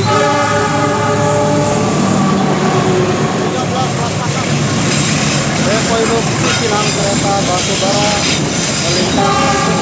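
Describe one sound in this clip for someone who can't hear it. Train wheels clatter loudly on the rails close by.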